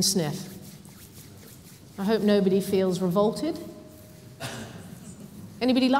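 A woman speaks with animation through a microphone in an echoing hall.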